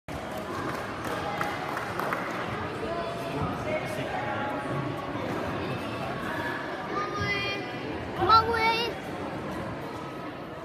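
A crowd of spectators chatters in a large echoing hall.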